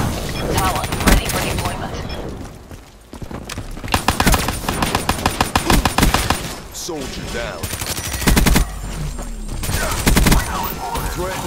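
Automatic guns fire rapid bursts of shots.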